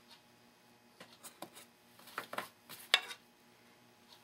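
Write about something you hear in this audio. Small parts click and tap against a wooden work surface.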